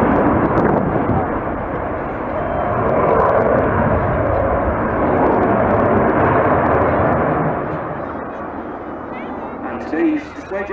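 A Eurofighter Typhoon fighter jet roars overhead and fades.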